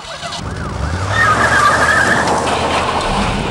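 Tyres screech and spin on concrete.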